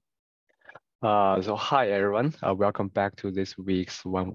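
A man speaks calmly through a microphone over an online call.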